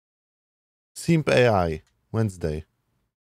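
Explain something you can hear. A young man speaks briefly into a microphone, close by.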